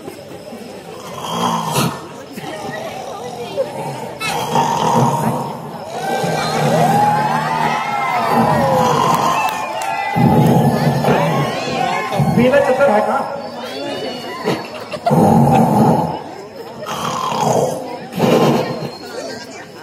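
A man's voice sings and speaks loudly through loudspeakers.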